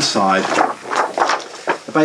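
Paper crinkles and rustles.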